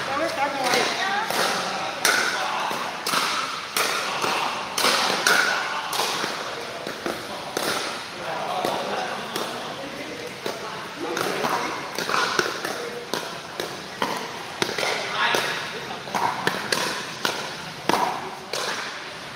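Paddles strike a plastic ball with sharp pops, over and over.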